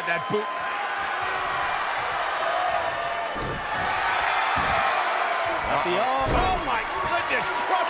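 Heavy bodies thud onto a wrestling mat.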